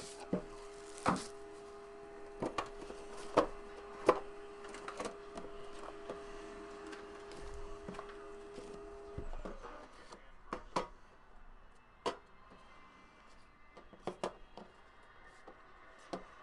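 Small boxes knock and tap against a metal tin.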